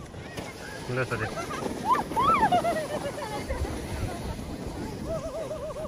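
Sleds slide and scrape over snow.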